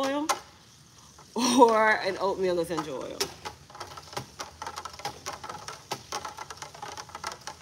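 A wire whisk sloshes and clicks rapidly through liquid.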